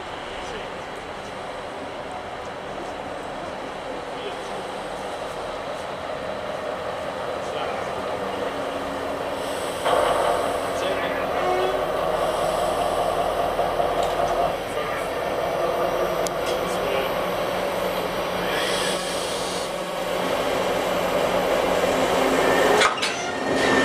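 A diesel locomotive engine rumbles as it rolls slowly closer.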